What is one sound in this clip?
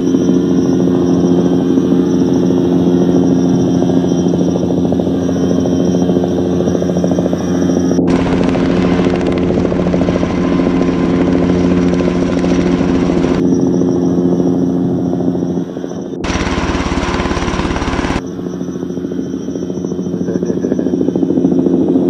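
A drone's propellers whine steadily overhead.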